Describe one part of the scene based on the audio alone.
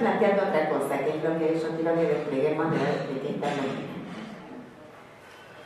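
A woman speaks with animation into a microphone, heard over loudspeakers in a room with some echo.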